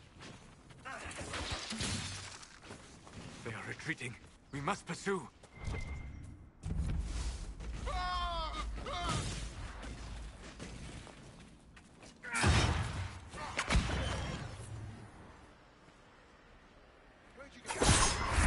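Magic bolts crackle and burst in combat.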